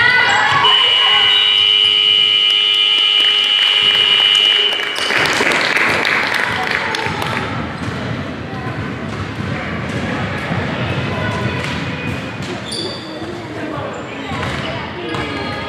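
Sneakers squeak and thump on a hard court in a large echoing hall.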